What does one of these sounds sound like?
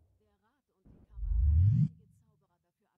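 A low whoosh swells as a menu opens.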